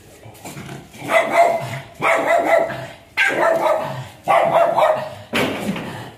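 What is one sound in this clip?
A dog barks in long, loud, repeated yelps.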